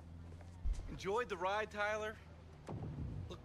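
A man speaks tensely from inside a car.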